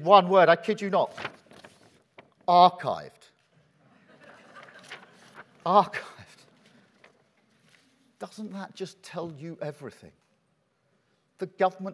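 A man speaks clearly into a microphone, in short bursts with pauses.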